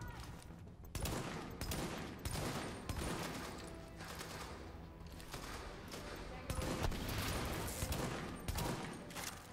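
Rifle shots ring out one at a time, each followed by a short echo.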